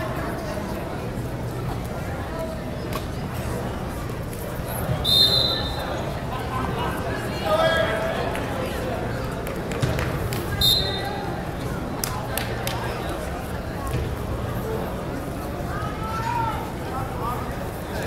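A crowd murmurs and chatters throughout.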